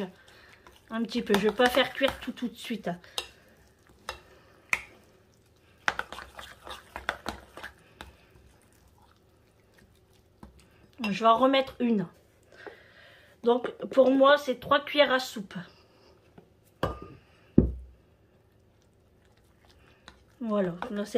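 A fork scrapes and taps against a bowl while mixing a thick mixture.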